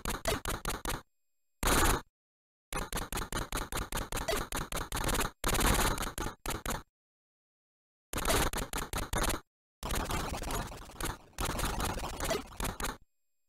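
Rapid electronic gunfire rattles in short bursts from an old video game.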